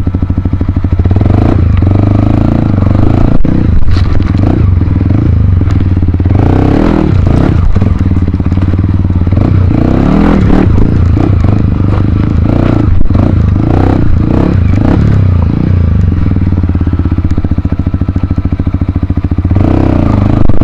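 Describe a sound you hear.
Rocks crunch and clatter under tyres.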